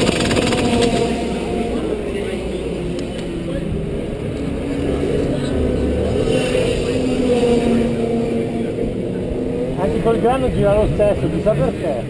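A kart engine idles with a rough, throbbing rumble.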